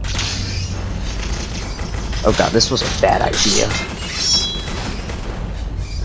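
Blades swish and clash in a fight.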